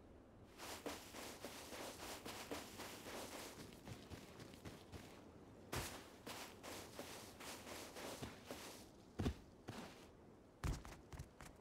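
Footsteps run quickly over dry grass and sand.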